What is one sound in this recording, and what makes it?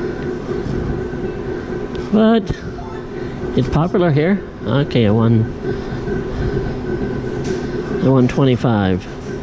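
A gaming machine plays steady electronic tones and jingles.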